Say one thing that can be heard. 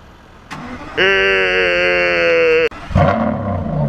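A sports car engine starts up and revs loudly.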